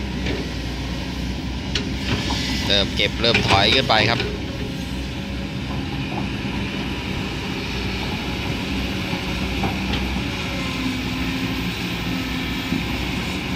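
Earth and stones scrape and tumble as an excavator digs.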